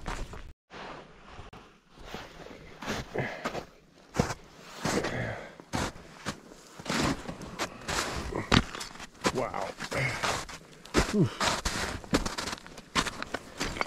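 Footsteps crunch on loose stones and snow, close by.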